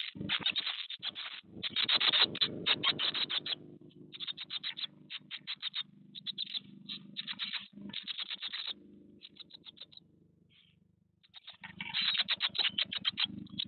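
Nestling birds chirp rapidly and shrilly close by.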